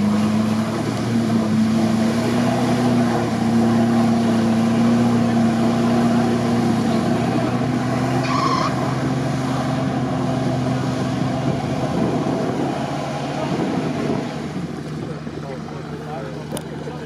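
An engine roars and strains under load.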